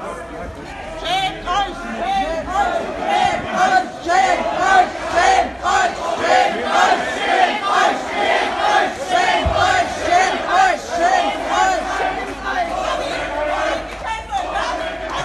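A large crowd chants loudly and rhythmically outdoors.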